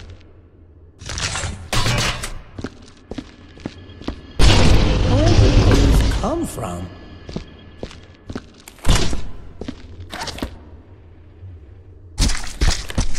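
Game sound effects thud and clatter as objects are picked up and thrown.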